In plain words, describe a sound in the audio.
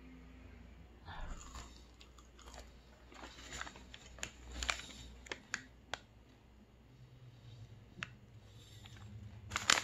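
A young man chews food with his mouth closed.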